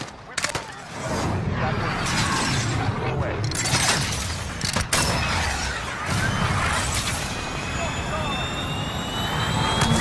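A rocket engine roars steadily.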